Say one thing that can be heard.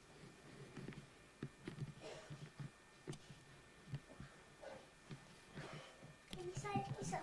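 A young girl talks and giggles close by.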